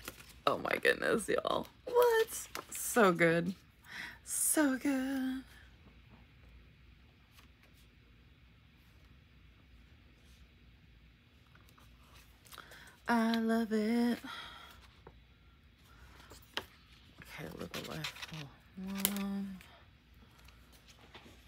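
A sheet of stickers rustles as it is handled.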